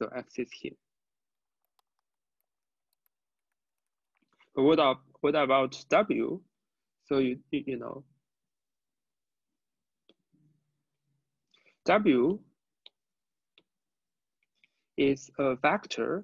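A young man speaks calmly and explains through a close microphone, pausing often.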